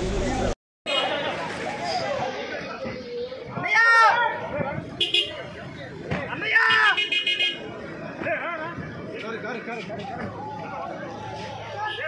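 A crowd of men shout and chatter excitedly nearby.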